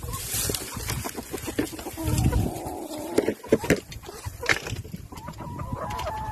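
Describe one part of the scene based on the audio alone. A hen clucks close by.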